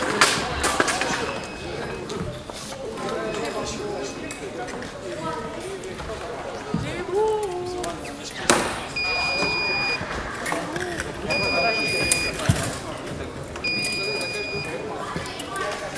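Men and women chatter nearby in a large echoing hall.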